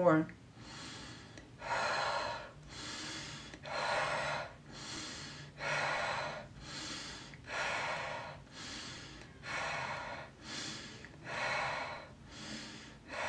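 A young woman breathes slowly and deeply in and out.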